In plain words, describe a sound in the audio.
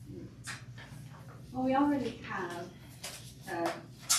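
Paper sheets rustle.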